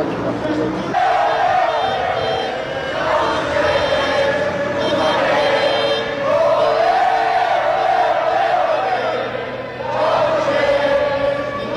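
A large crowd chants together outdoors.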